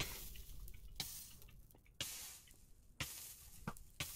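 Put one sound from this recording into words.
Lava bubbles and pops.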